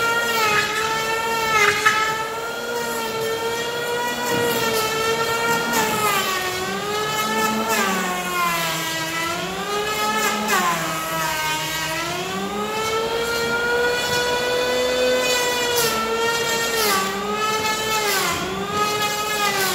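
An electric hand planer whines loudly as it shaves wood, its pitch dipping under load.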